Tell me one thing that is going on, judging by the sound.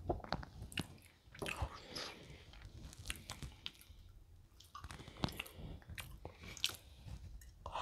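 Close, crisp crunching and chewing sounds as pastry is eaten.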